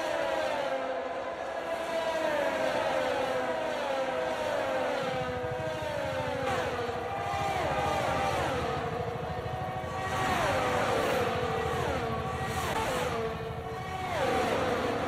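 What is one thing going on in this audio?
Racing car engines scream at high revs.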